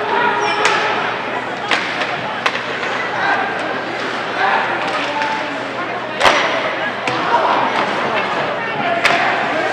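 Spectators murmur and call out in a large echoing rink.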